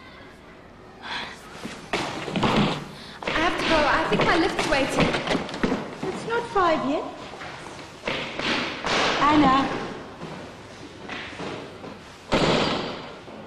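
A woman speaks with animation in an echoing room.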